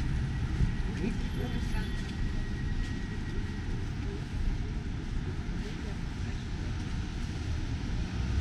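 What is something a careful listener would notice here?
Wind rumbles steadily outdoors.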